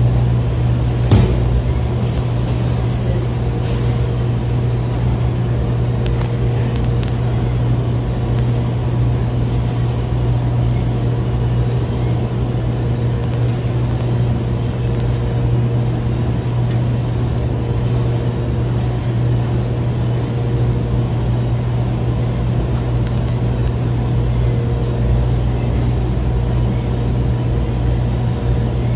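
Soft toys thump softly inside a turning drum.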